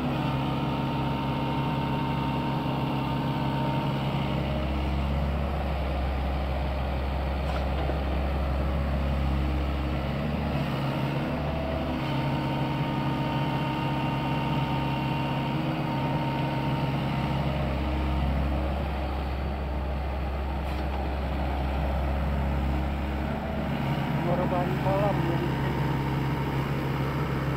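The diesel engine of a tracked excavator drones under load.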